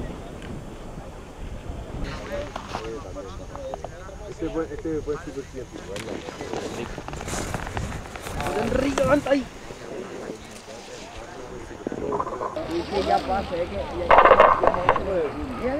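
Skis scrape and hiss over hard snow.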